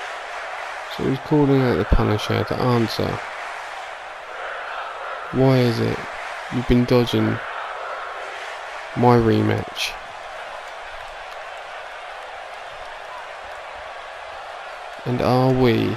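A man speaks loudly into a microphone over an arena's loudspeakers, in short bursts.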